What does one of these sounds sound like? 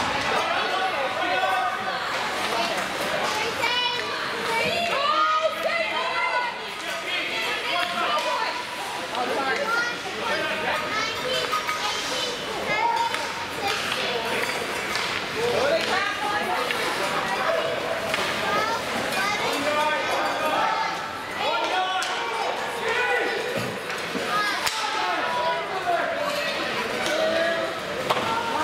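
Spectators near the microphone chatter and call out in a large echoing rink.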